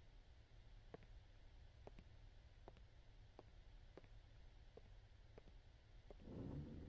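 Footsteps knock slowly on a wooden floor.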